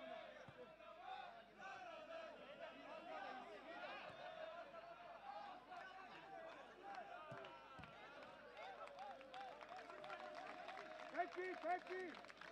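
Men shout to each other during a football match.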